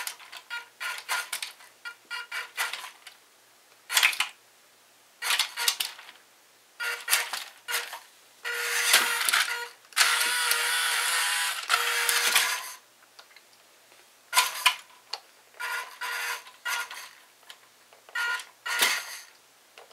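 Plastic toy wheels roll and bump over wood.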